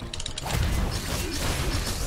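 A laser beam hums as it fires.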